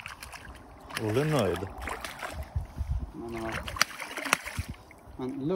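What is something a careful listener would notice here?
A fish splashes and thrashes in the water close by.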